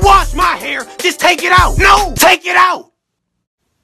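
A young man talks loudly and with animation close to a microphone.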